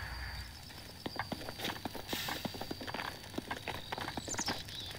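Footsteps patter quickly on grass and dirt.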